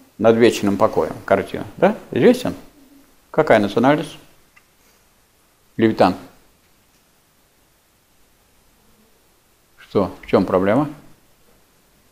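An elderly man speaks calmly in a small room, in bursts with pauses.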